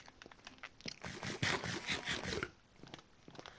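A game character munches food with crunchy bites.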